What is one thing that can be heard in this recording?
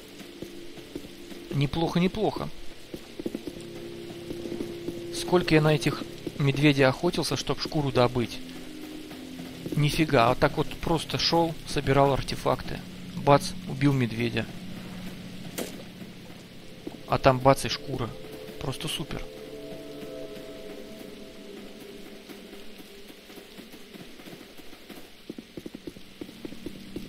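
Footsteps tread on grass and dirt.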